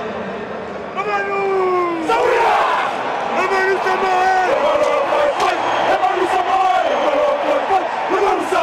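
A group of men chants and shouts loudly in unison.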